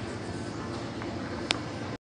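Footsteps tap softly.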